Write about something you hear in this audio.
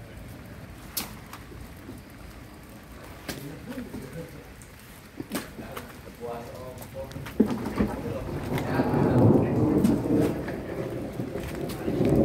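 Wet fish are set down on a plastic sheet with soft slaps.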